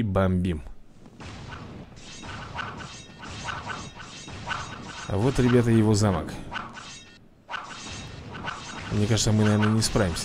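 Swords clash and clang in a noisy battle.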